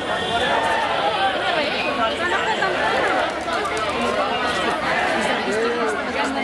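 A crowd of women and men chant and talk loudly together outdoors.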